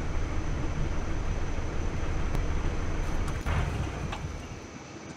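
A vehicle engine rumbles low and steady, then fades.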